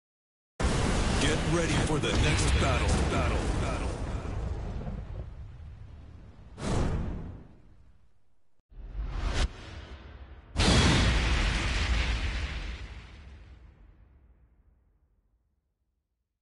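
Fiery explosions roar and rumble, then fade away.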